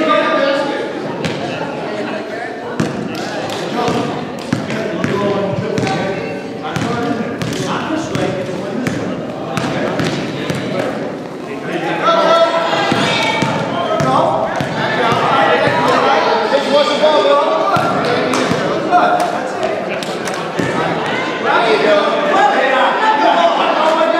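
A crowd of children and adults talk and shout in an echoing gym.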